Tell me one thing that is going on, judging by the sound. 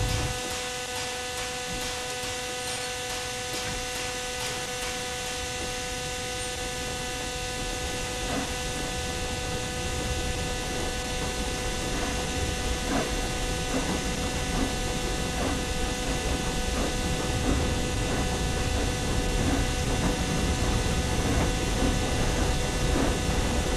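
A steam locomotive chugs and rumbles as it slowly gathers speed.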